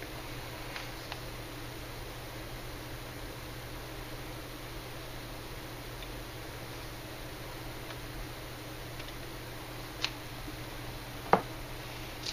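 Hard plastic clicks and taps as a model is handled.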